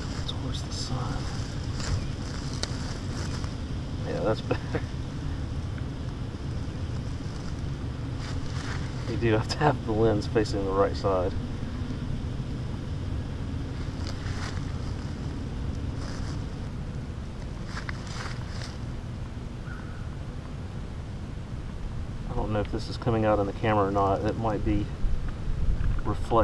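Water fizzes softly with small bubbles.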